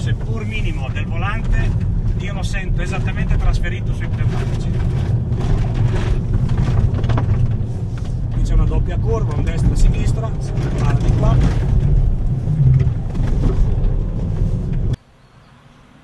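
A car engine roars loudly from inside as the car speeds along a road.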